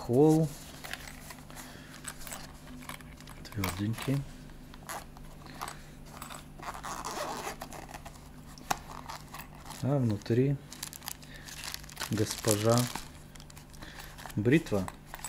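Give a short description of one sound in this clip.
A hard case is handled with soft knocks and scrapes.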